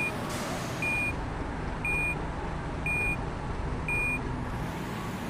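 A reversing alarm beeps at a steady pace.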